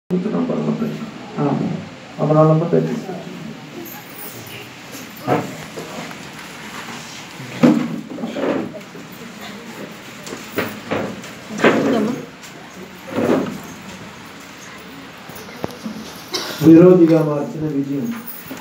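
A man speaks loudly through a microphone in a room with some echo, in short bursts with pauses.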